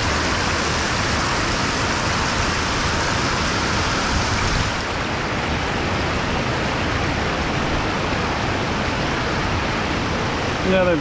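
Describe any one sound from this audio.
Water rushes steadily over rocks close by.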